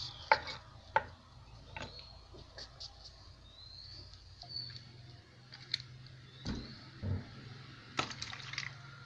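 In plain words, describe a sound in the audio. A cleaver knocks and chops on a wooden board.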